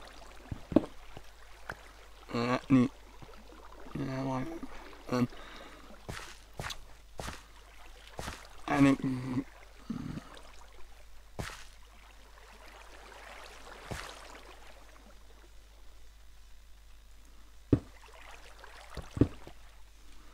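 Stone blocks crack and break under a pickaxe in short knocks.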